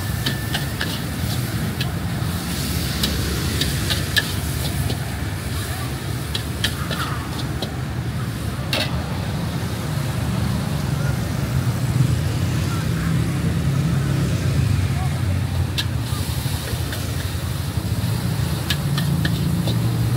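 A metal spatula clinks and scrapes against a wok.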